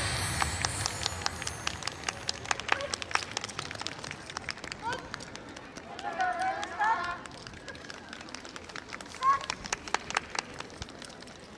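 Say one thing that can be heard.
Wooden clappers clack in quick rhythmic bursts.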